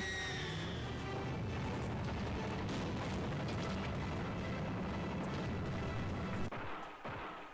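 A video game car engine roars.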